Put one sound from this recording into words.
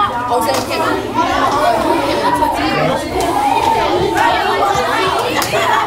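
Women and girls talk and call out over each other in a large echoing room.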